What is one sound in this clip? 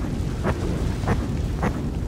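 Flames roar.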